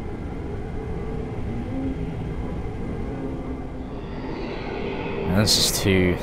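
A deep rumbling roar of a blast echoes and slowly dies away.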